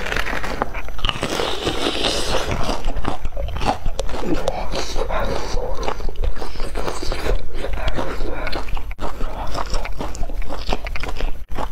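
A young woman chews noisily close to a microphone.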